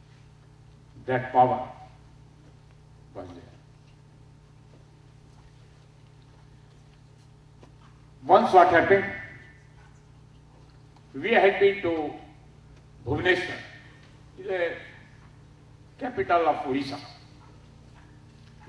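An elderly man speaks slowly into a microphone, in short phrases with long pauses.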